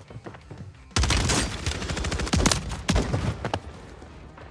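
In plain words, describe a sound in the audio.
Rapid gunfire bursts loudly in a video game.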